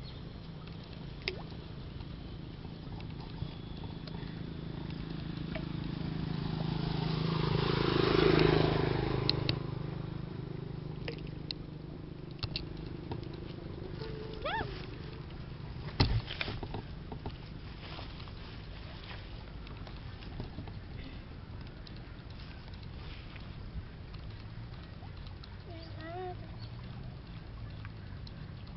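Water trickles steadily.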